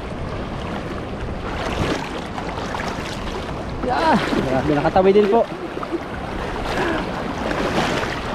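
River water splashes and ripples nearby.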